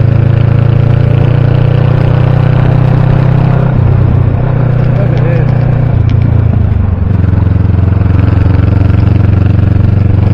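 A motorcycle engine hums steadily, its pitch shifting as the rider changes speed.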